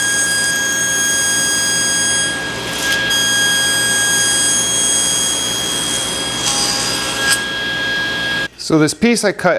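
A table saw runs with a steady high whine.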